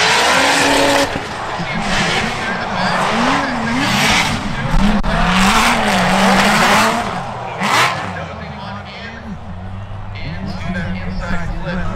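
Car engines rev hard, rising and falling in pitch.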